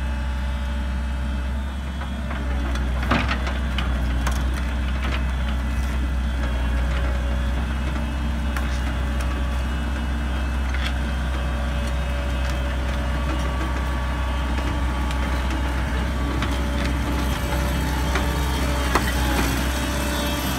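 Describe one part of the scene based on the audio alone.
A diesel excavator engine idles with a steady low rumble close by.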